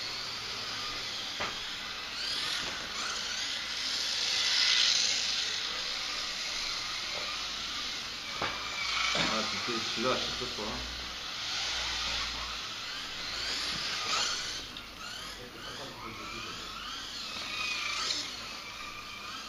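Small electric model cars whine past at speed, rising and falling as they pass.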